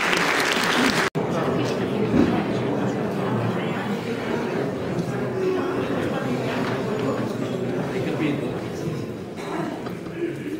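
An audience murmurs and claps in a large echoing hall.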